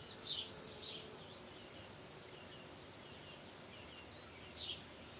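A river flows quietly nearby.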